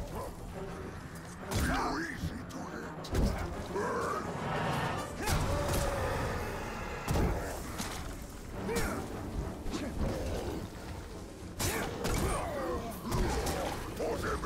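Swords swish and clash in quick strikes.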